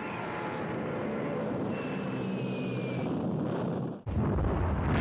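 Aircraft engines drone overhead.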